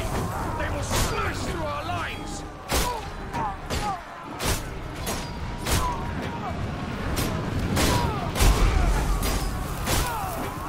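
A heavy crossbow fires bolts again and again with sharp thwacks.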